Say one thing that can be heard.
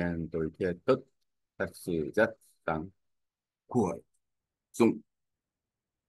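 A young man speaks slowly and deliberately into a microphone, with pauses.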